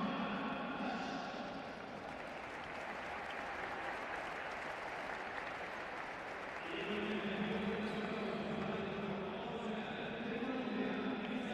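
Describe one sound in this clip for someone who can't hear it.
A small crowd murmurs in a large echoing hall.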